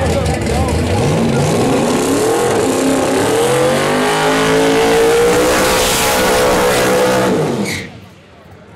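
A race car engine revs hard and roars, rising in pitch.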